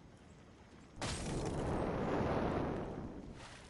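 A loud icy whoosh bursts out and slowly fades.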